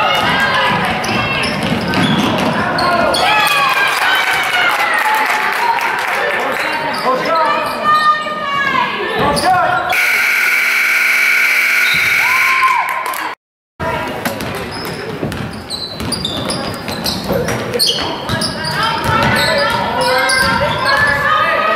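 A crowd of spectators murmurs and calls out.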